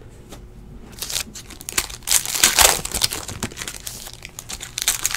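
A plastic card pack crinkles loudly as hands tear it open.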